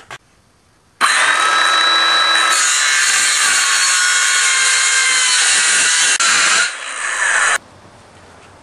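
A circular saw whines loudly as it cuts through wood.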